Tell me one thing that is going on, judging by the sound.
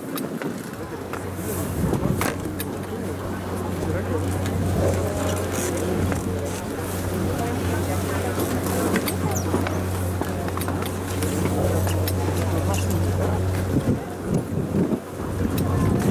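Skis scrape and slide over packed snow close by.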